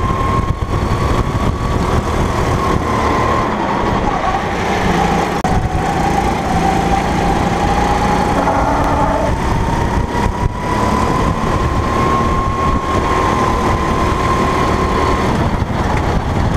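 A go-kart engine whines loudly up close, rising and falling in pitch.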